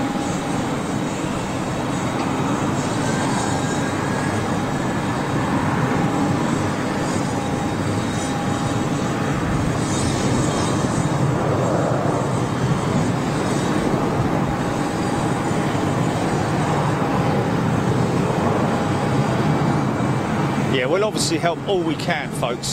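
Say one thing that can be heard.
A jet airliner's engines roar steadily as it taxis nearby.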